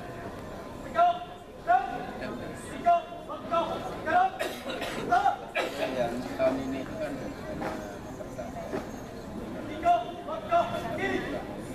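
A group of women sing together nearby.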